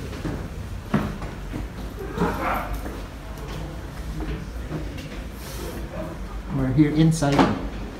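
Footsteps climb creaking wooden stairs.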